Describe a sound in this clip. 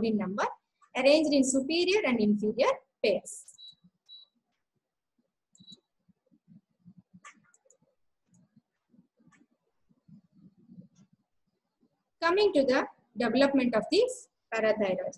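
A young woman lectures calmly, close to a microphone, pausing between phrases.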